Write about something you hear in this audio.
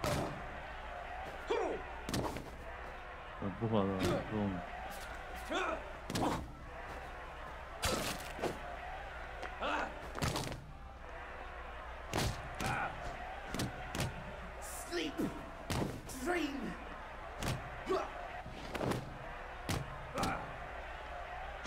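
A young man shouts angrily.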